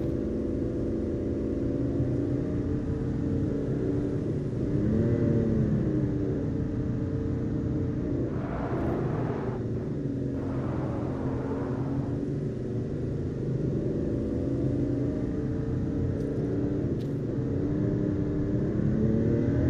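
A car engine hums steadily as it drives along a road.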